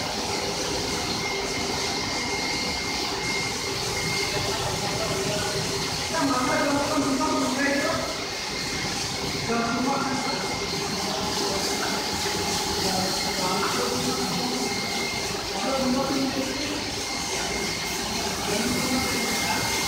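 An automatic carpet washing machine runs with a steady mechanical hum.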